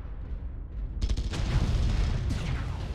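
Guns fire in loud bursts with explosions.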